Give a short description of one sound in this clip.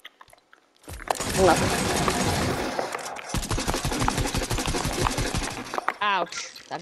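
Rapid automatic gunfire rattles.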